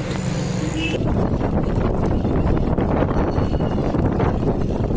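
A bicycle rolls and rattles over a bumpy paved street.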